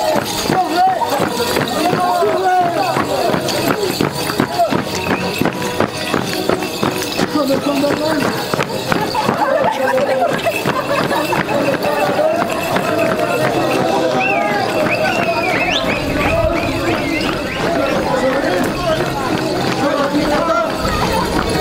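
Many feet stamp and shuffle on a hard street.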